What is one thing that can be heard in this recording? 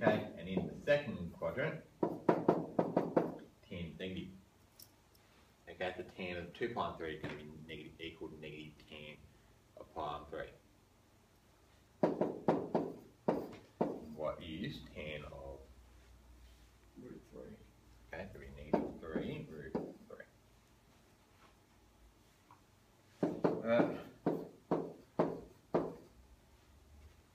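A man speaks calmly, explaining.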